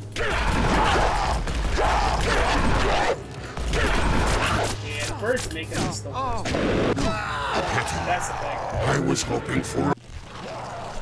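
A gun fires in loud, rapid bursts.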